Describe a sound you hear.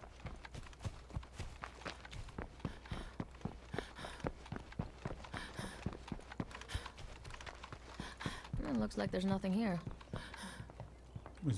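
Quick footsteps run over ground and then onto wooden boards.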